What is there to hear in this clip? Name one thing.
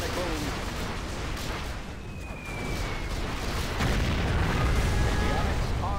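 A propeller plane drones overhead.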